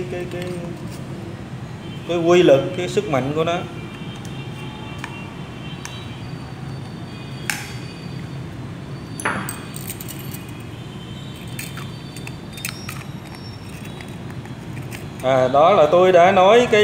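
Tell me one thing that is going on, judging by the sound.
Small metal and plastic parts click and tap as they are handled.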